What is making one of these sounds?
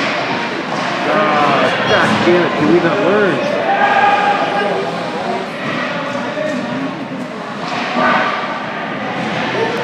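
Young male players shout to each other across a large echoing rink.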